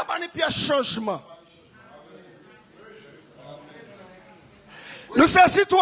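A man speaks with animation through a microphone and loudspeakers in an echoing room.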